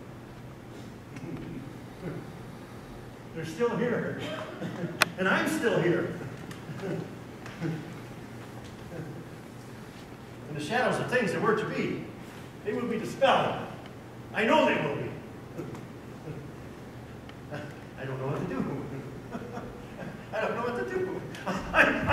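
An elderly man speaks with feeling on a stage, in a large hall.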